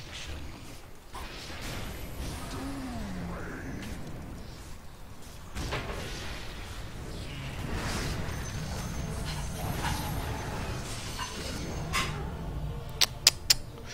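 Swords clash and spells burst in a fast fight.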